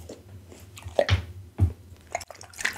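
A glass bowl knocks down onto a table.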